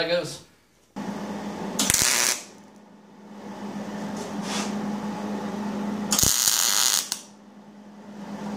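A welding arc buzzes and crackles steadily.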